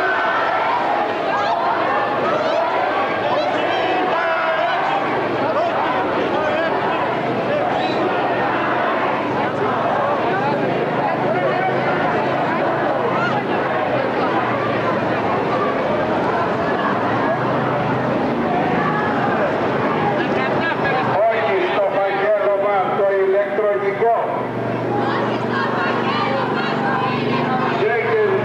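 A large crowd of men and women talks and murmurs outdoors.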